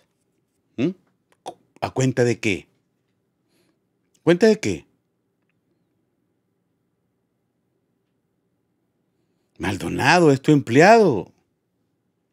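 A man speaks with animation into a close microphone, in short bursts with pauses.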